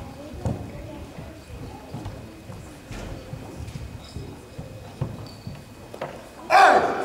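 Bare feet thud and slap on a wooden floor.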